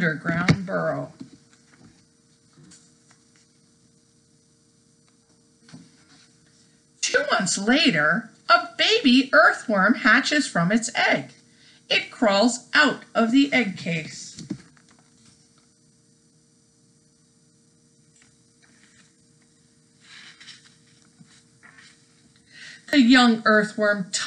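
A middle-aged woman reads aloud calmly, close to a microphone.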